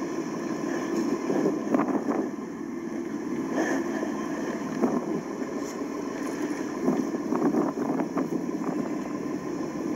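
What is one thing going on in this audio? Wind rushes over a microphone outdoors.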